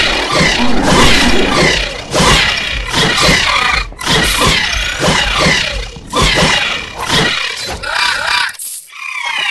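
Weapons clash and slash in a fast, fierce fight.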